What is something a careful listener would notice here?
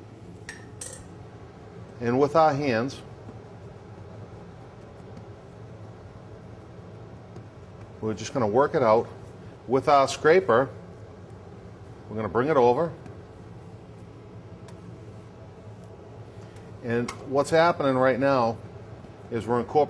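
Hands pat and press soft dough on a floured counter.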